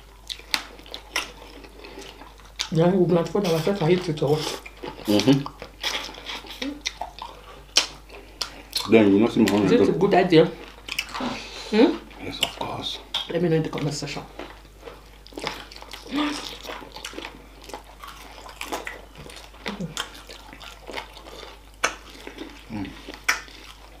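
A woman chews and smacks her lips loudly close to a microphone.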